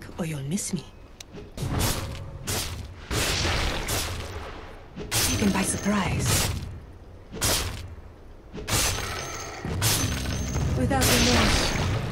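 Game spell effects and weapon hits crackle and thud in quick bursts.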